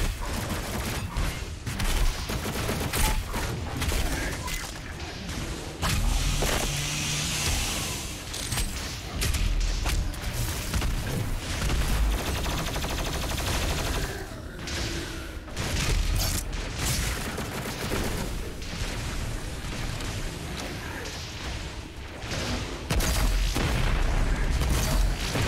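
Explosions boom with deep rumbles.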